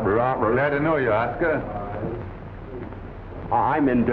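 A younger man answers with a laugh.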